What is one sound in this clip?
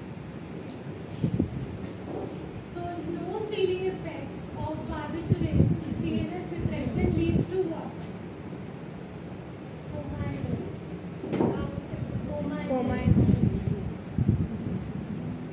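Young women speak with animation nearby.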